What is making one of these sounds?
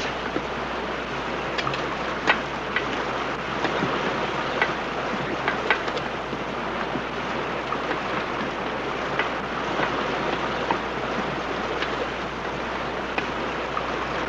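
Footsteps clomp on wooden railway ties.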